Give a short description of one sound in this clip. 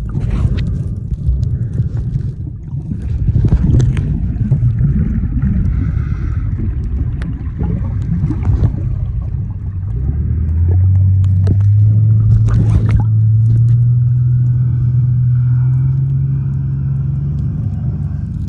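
Swimmers kick and splash above, heard muffled through water.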